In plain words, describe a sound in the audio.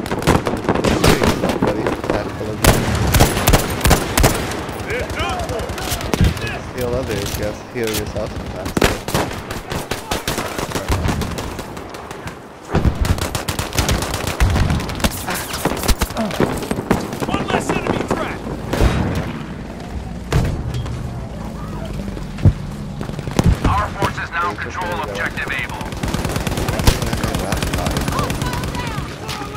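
Explosions and gunfire rumble in the distance throughout.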